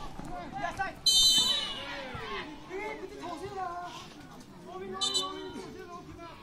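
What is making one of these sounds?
A referee's whistle blows shrilly twice.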